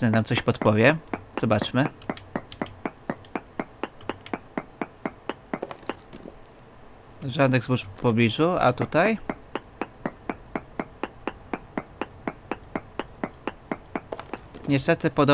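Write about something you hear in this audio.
A pickaxe chips steadily and rapidly at stone.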